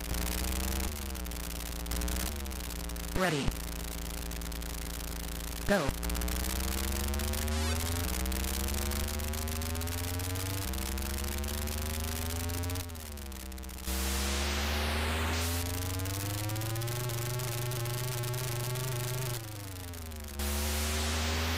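A buzzy electronic car engine drones and its pitch rises and falls as it speeds up and shifts gears.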